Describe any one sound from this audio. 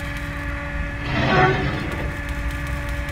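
A rusty metal valve wheel creaks as it turns.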